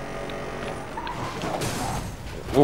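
A car crashes with a loud crunch of metal.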